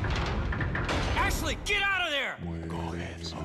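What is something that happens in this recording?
A man shouts in alarm.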